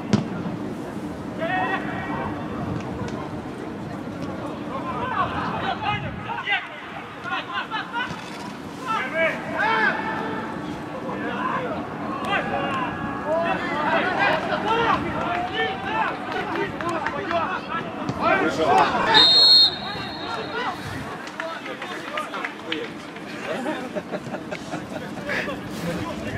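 Men shout and call out to each other across an open outdoor field.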